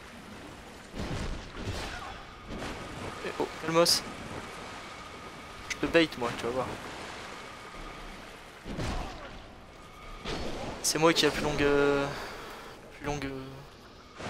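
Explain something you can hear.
A sword swings and strikes with heavy thuds.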